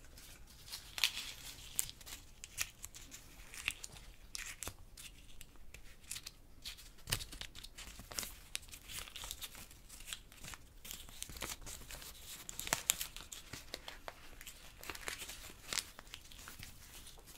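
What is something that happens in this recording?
Paper crinkles and rustles close to a microphone.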